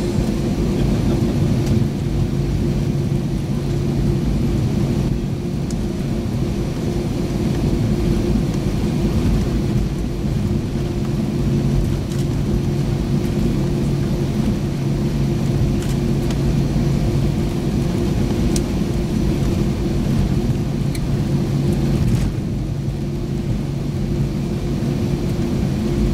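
An airliner rumbles as it taxis over concrete.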